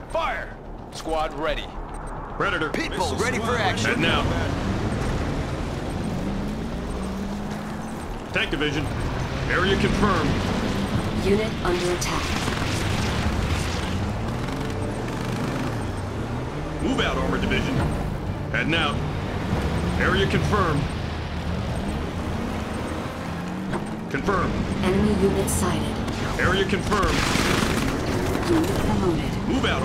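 Tank engines rumble and whine as heavy vehicles roll.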